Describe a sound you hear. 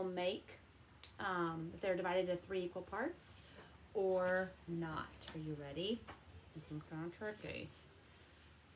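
A young woman speaks calmly and clearly close to a microphone.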